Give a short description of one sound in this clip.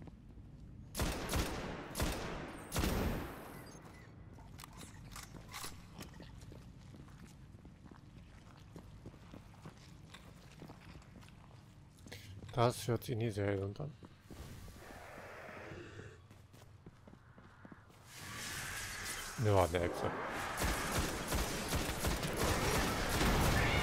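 A rifle fires several loud, booming shots.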